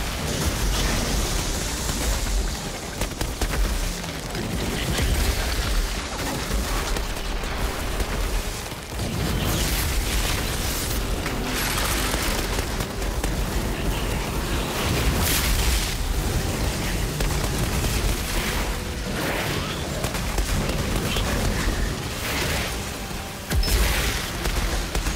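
Monsters roar and growl in a loud fight.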